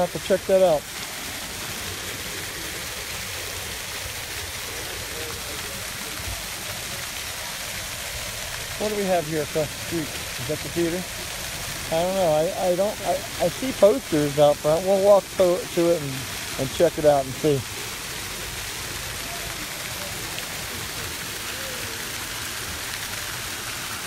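Fountain jets splash and spatter steadily on wet paving outdoors.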